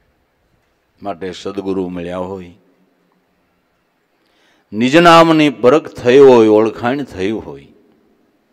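An older man speaks calmly into a microphone in a large, echoing hall.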